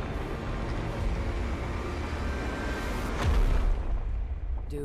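Rock and stone crumble and crash down with a deep rumble.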